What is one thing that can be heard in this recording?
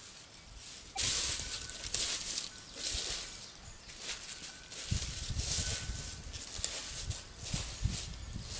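Footsteps crunch through dry leaves on the ground.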